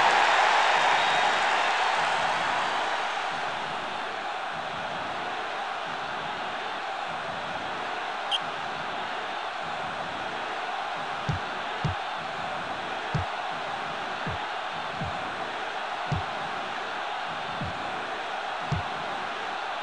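A crowd roars steadily, louder at first and then settling.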